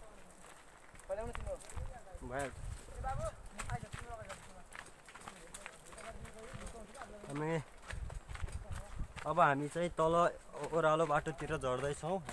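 Footsteps crunch on a dry dirt trail.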